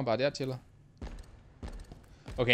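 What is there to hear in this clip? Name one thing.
Gunshots boom.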